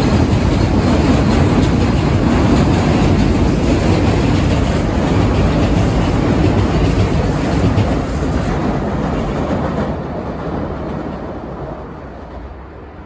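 A train rushes past close by, wheels rumbling and clattering on the rails, then fades into the distance.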